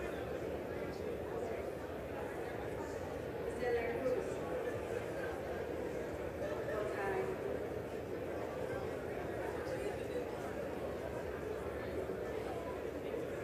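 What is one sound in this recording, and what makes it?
A crowd of people murmurs and chatters throughout a large echoing hall.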